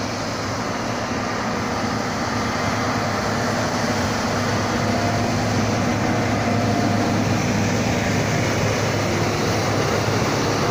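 A plough blade scrapes through packed snow.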